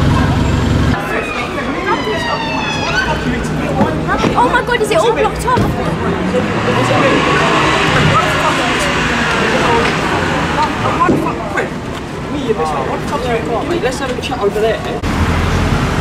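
Men and women chatter in the distance.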